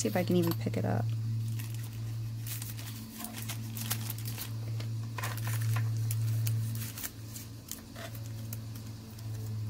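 A metal ruler taps and scrapes against a hard tabletop.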